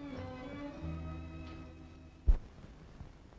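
Music plays and fades out.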